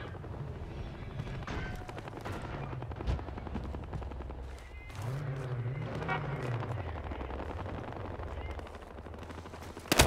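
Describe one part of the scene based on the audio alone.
Footsteps crunch over dirt and gravel.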